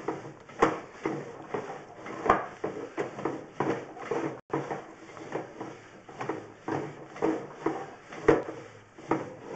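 A device scrapes and bumps along inside a hollow pipe.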